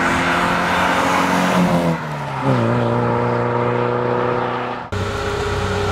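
A sports car engine roars as the car speeds past and shifts gear.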